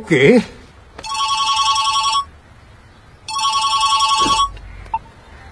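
A mobile phone rings with a repeating tune.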